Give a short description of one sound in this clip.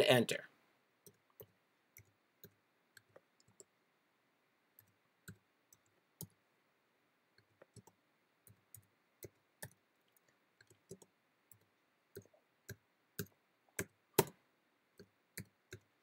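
Keys click softly as someone types on a keyboard.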